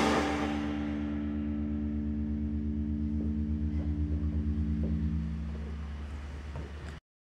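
Electric guitars ring out in a loud sustained chord that slowly fades with a wavering throb.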